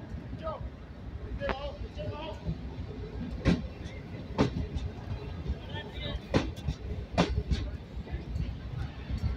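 A train rumbles slowly along the tracks close by.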